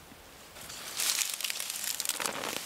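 A small trowel scrapes and digs into soil.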